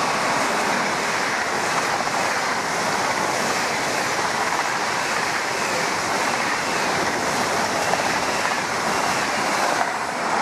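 A high-speed train roars past at speed, with a loud rushing of air.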